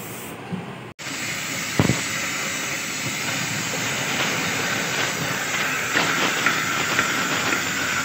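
A cutting torch roars and hisses against steel.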